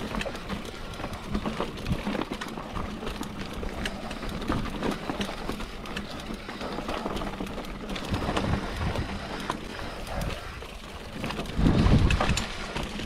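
Bike tyres rumble and crunch over a rocky dirt trail.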